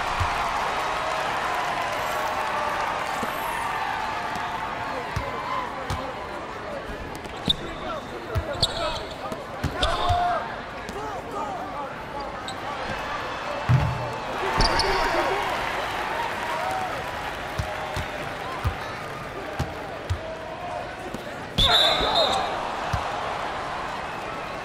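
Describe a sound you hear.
A crowd murmurs and cheers steadily in a large echoing arena.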